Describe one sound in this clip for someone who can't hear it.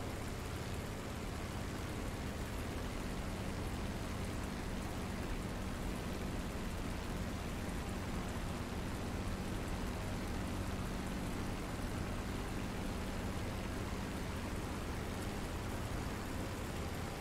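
Wind rushes steadily past an aircraft cockpit.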